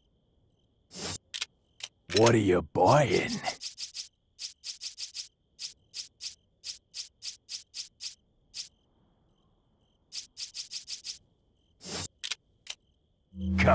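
Short menu clicks tick quickly, one after another.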